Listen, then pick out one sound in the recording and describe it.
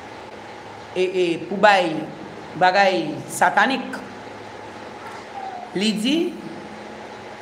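A woman speaks calmly and slowly, close to a microphone.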